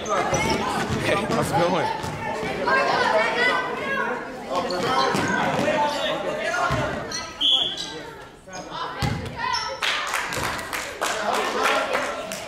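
Children shout and call out nearby in a large echoing gym.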